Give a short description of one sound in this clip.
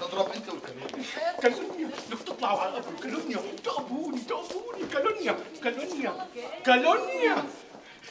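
Several women talk at once, excited.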